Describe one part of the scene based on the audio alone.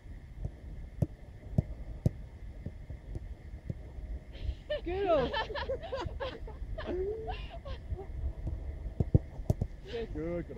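A football thuds sharply off a foot.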